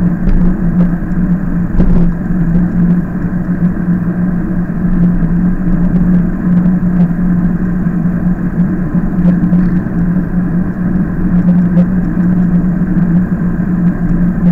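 Tyres roll on asphalt with a steady rumble.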